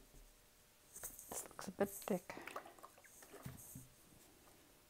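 A plastic bottle squelches and sputters as paint is squeezed out.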